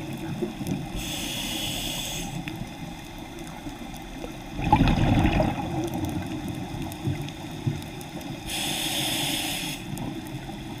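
Air hisses through a diver's breathing gear now and then.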